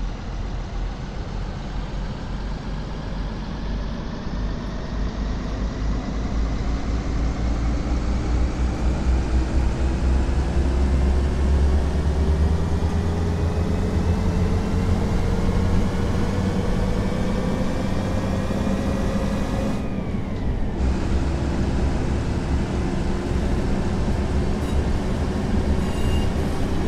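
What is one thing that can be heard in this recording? An electric train motor whines, rising steadily in pitch as the train speeds up.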